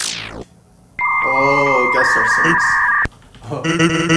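A loud electronic tone buzzes steadily, then shifts higher.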